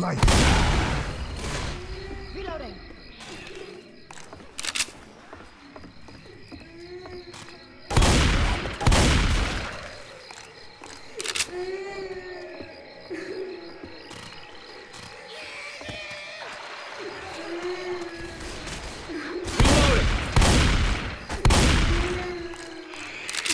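Gunshots boom loudly, a few at a time, with a ringing tail.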